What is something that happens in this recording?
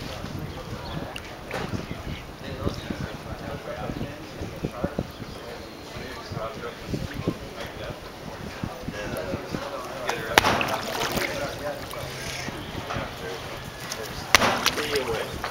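Water splashes and sloshes as fish thrash near the surface.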